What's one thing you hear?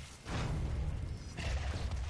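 A rocket explodes with a loud boom.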